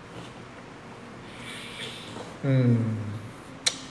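A young man coughs into his hand.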